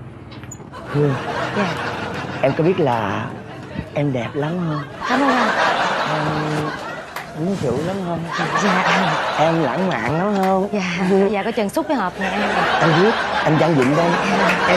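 A young man talks and laughs cheerfully close by.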